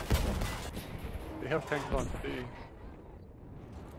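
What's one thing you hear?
An explosion booms.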